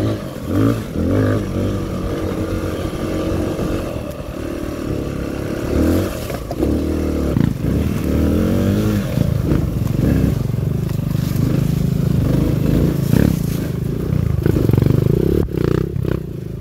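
A dirt bike engine revs and putters up close, rising and falling in pitch.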